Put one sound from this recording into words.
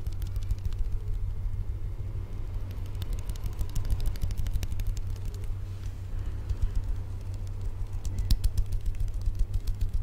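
Hands rub together and make soft crisp clicks close to a microphone.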